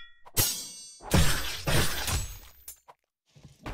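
A magic burst crackles and rumbles.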